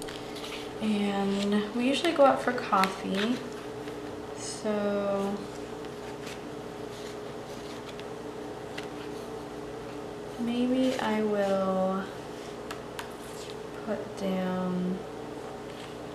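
Sheets of sticker paper rustle and crinkle as hands handle them.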